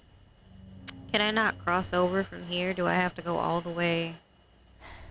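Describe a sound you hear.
A young woman speaks with animation close to a microphone.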